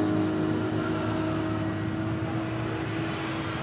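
A motor scooter engine hums as it passes close by and fades.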